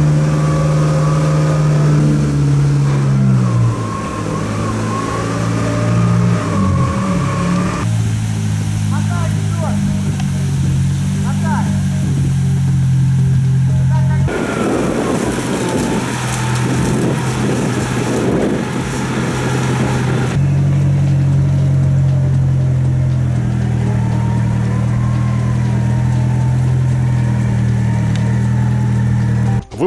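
An off-road vehicle's engine rumbles and revs.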